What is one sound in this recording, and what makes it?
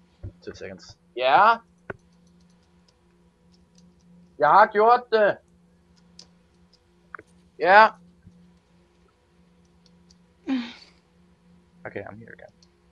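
A young man speaks close to a microphone in short, drawn-out bursts.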